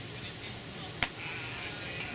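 A bat cracks against a ball outdoors.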